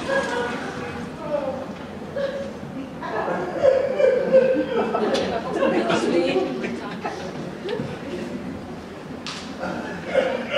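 A man speaks into a microphone, heard over loudspeakers in a large echoing hall.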